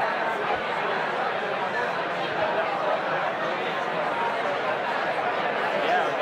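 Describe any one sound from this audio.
An audience murmurs and chatters softly.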